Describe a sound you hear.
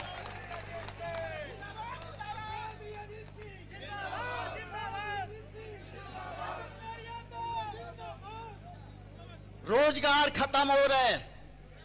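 A man speaks forcefully into a microphone over a loudspeaker.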